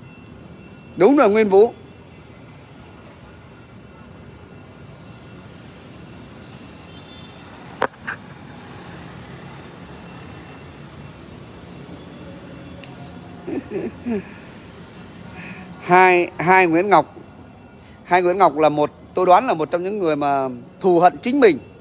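A middle-aged man speaks close by, with animation.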